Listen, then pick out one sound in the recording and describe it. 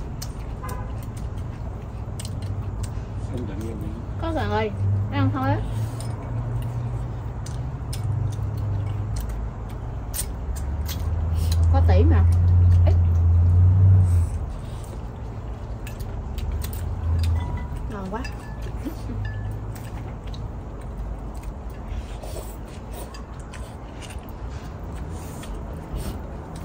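Diners chew and slurp food up close.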